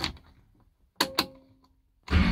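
A key clicks as it turns in a car's ignition.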